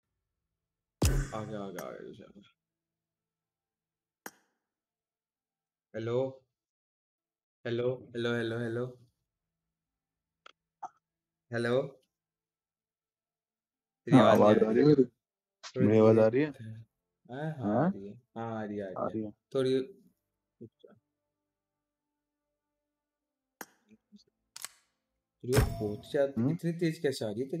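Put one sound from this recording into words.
A young man talks with animation into a nearby microphone, in bursts with pauses.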